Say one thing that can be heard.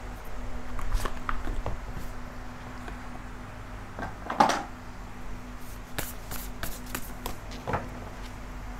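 Playing cards riffle and tap as they are shuffled by hand.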